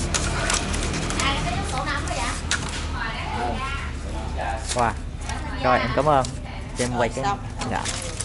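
Bamboo strips rustle and click as a basket is woven.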